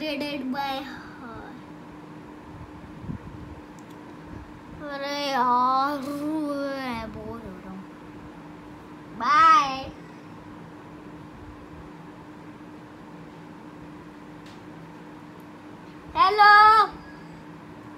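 A young boy talks and sings with animation, close by.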